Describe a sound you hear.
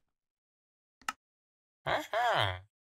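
A short electronic game chime plays.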